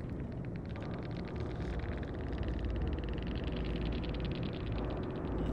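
Wind rustles through tall grass.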